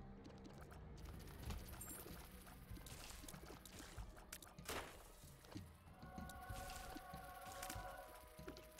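Game sound effects pop and splat as shots hit enemies.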